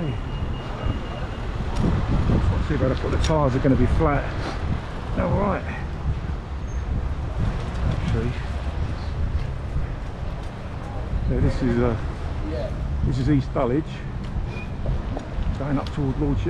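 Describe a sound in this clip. Bicycle tyres rumble over paving stones.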